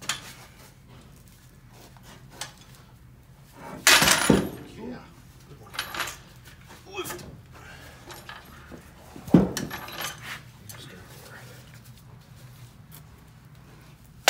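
Metal clanks and knocks as a heavy jack is handled.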